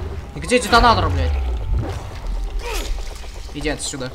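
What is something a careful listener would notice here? A heavy blow thuds into flesh with a wet splatter.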